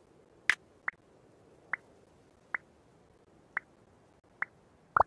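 Short, sharp menu clicks sound at an even pace.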